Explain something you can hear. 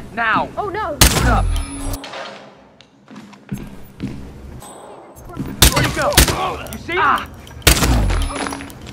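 A pistol fires several loud shots that echo.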